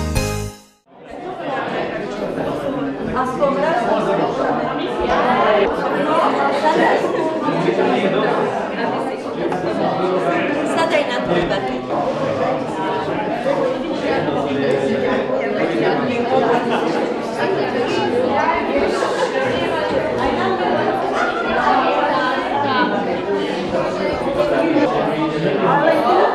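A crowd of adults chatters in a busy, echoing room.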